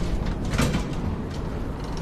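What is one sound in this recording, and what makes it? A metal lever clunks as it is pulled.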